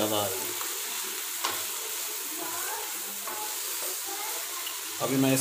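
Food sizzles in a hot pan.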